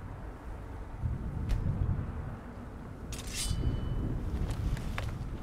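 Thunder rumbles low and heavy.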